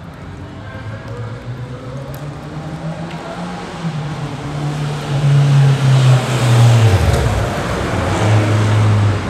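A motorbike engine approaches and grows louder.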